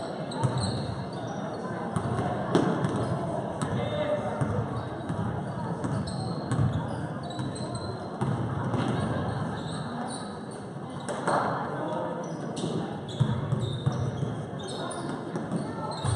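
A crowd of spectators chatters in the distance.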